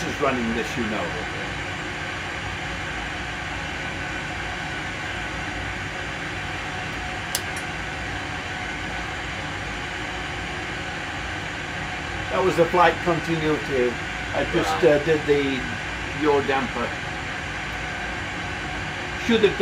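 A man speaks calmly nearby, explaining.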